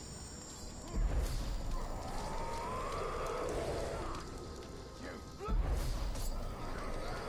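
A magical blast strikes with a deep whooshing boom.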